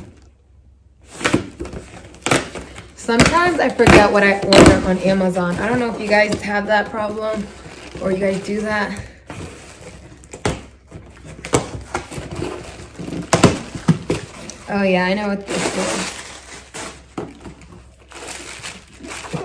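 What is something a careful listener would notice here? Cardboard rustles and scrapes as a box is opened.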